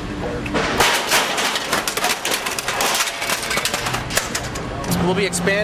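Metal panels clatter and crash onto pavement outdoors.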